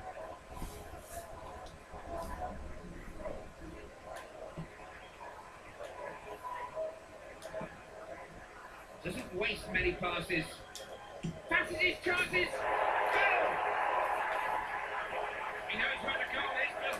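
A stadium crowd murmurs and then cheers loudly through a television speaker.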